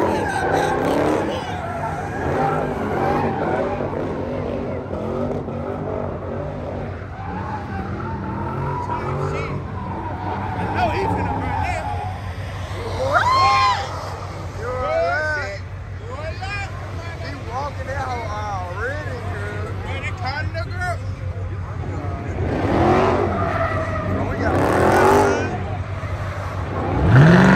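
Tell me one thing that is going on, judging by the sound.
A crowd of young men and women chatters and calls out outdoors.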